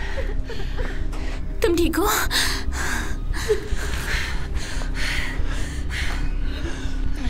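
A young woman speaks in a tense, hushed voice.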